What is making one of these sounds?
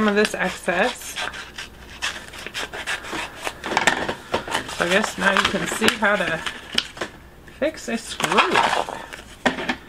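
A plastic sheet crinkles and rustles in hands.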